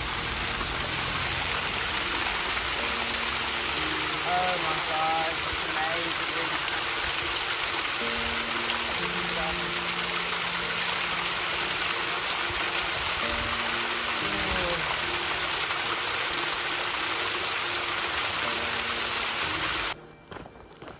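Water splashes steadily down a small waterfall close by.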